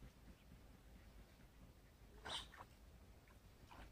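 Bait splashes into calm water.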